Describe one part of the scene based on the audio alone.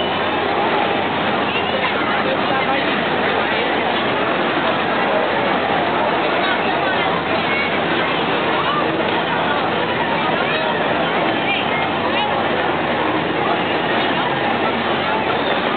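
A fairground ride whirls and rumbles steadily.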